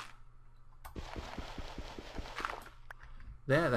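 Gravel crunches repeatedly as it is dug.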